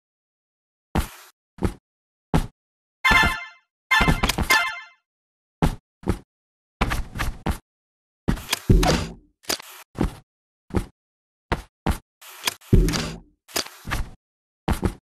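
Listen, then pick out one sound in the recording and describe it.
Short electronic game sounds pop and whoosh in quick bursts.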